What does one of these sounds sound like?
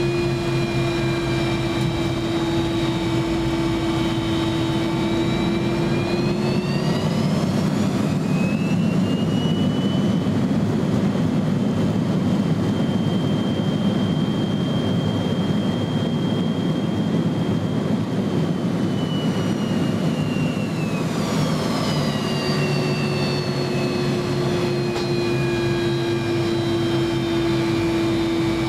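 A jet engine roars and whines steadily close by, its pitch rising and then falling back.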